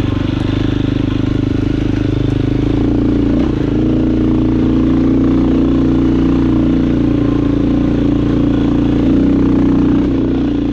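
A dirt bike engine revs and putters steadily up close.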